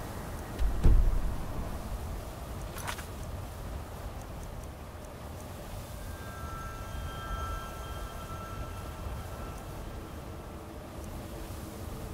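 Short interface clicks and whooshes sound now and then.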